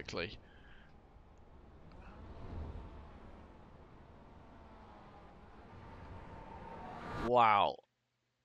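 Racing car engines drone and whine.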